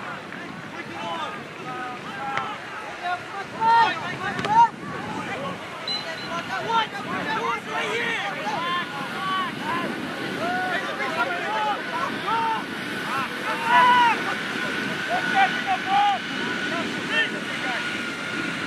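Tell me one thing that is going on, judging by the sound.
Young players and spectators shout across a wide open field.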